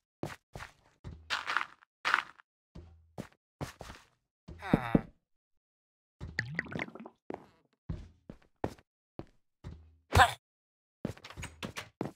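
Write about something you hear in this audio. A game villager grunts with a nasal murmur.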